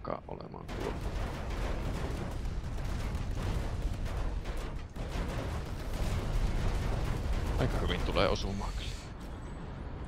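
Heavy gunfire rattles in rapid bursts.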